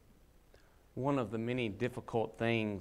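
A man speaks calmly through a microphone in a reverberant room.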